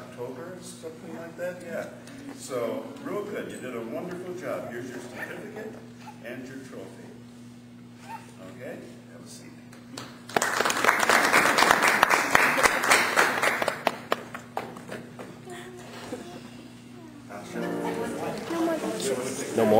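A man speaks calmly to an audience.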